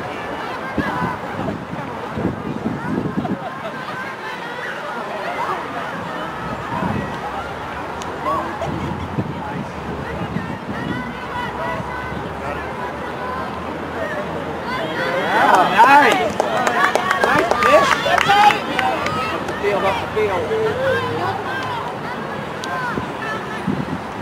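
Young women call out to one another across an open field.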